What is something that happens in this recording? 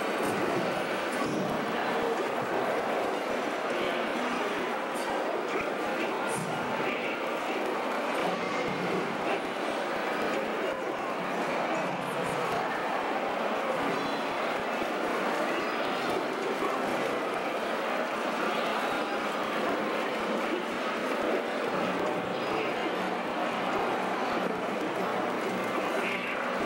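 A crowd of people chatters in a busy, echoing room.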